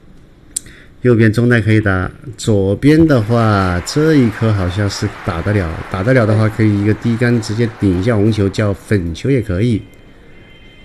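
A middle-aged man comments with animation through a microphone.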